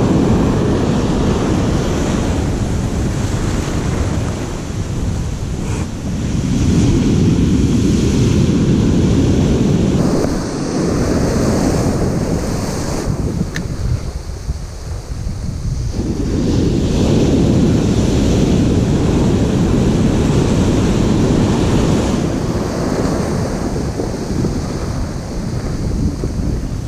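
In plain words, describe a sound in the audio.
Strong wind buffets loudly outdoors.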